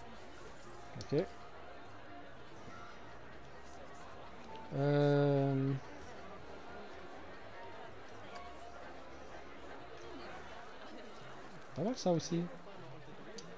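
A short game interface tone chimes.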